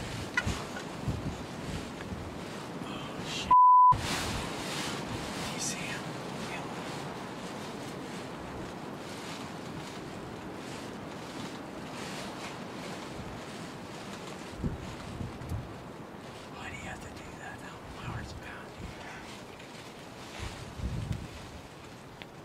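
A wild turkey makes deep, low drumming thumps nearby.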